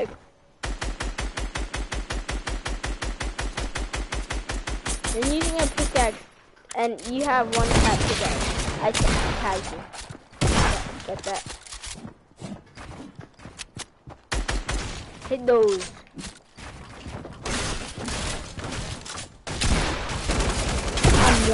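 A gun fires in a rapid, steady burst of shots.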